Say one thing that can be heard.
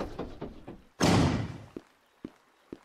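A burst of fire roars briefly and fades.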